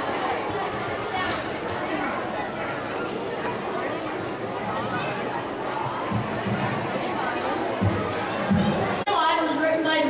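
A large children's choir sings together in a large hall.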